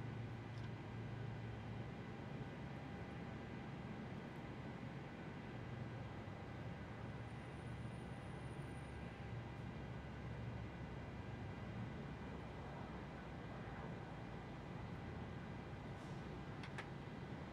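A jet engine hums and whines steadily.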